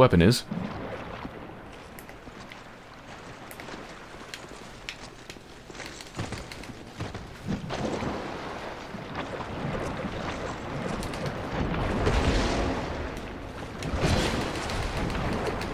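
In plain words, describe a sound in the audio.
Armour clanks with footsteps on stone.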